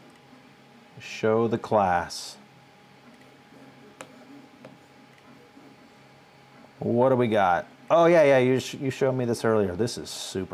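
A middle-aged man speaks calmly and close into a microphone, in short bursts.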